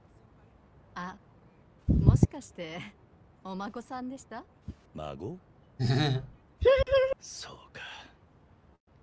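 A young woman speaks calmly and politely.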